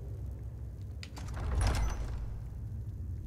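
A heavy stone door grinds open.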